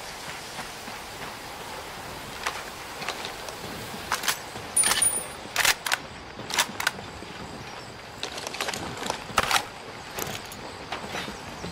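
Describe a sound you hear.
Boots step on gravel and a hard floor.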